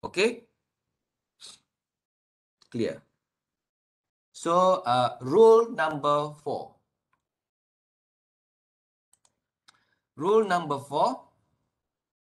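A man lectures calmly in short phrases, heard through an online call microphone.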